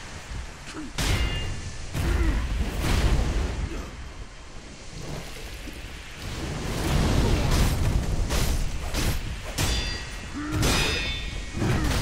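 Swords clash with sharp metallic rings.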